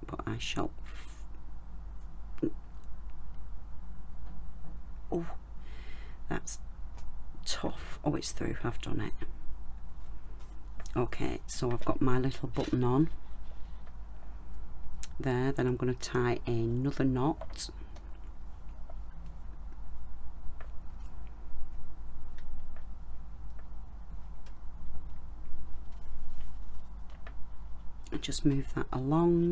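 A leather cord rustles and taps softly as fingers thread it through a button.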